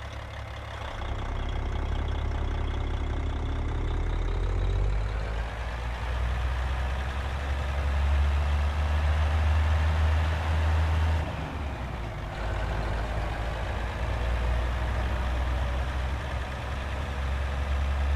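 A truck's diesel engine revs up and roars as the truck pulls away.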